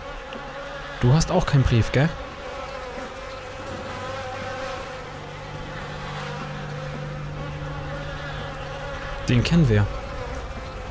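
A young man speaks loudly and excitedly into a close microphone.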